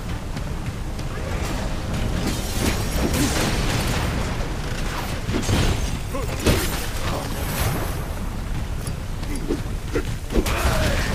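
A heavy creature of crystals crunches and clatters as it moves.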